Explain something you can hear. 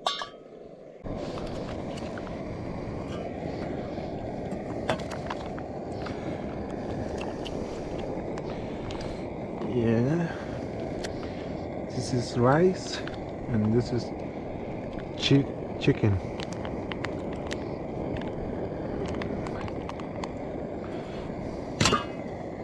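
A camping stove burner roars steadily.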